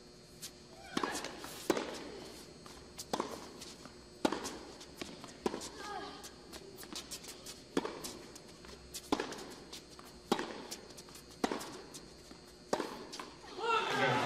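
A tennis ball is struck back and forth with sharp pops in a large indoor hall.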